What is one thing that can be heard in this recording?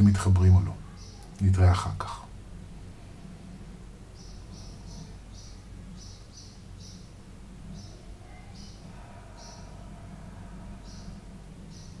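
A man speaks softly and calmly, close to a microphone.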